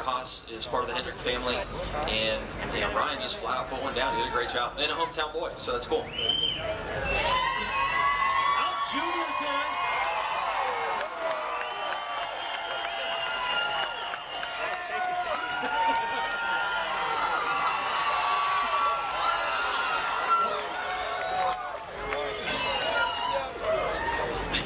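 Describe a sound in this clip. A man speaks through a loudspeaker.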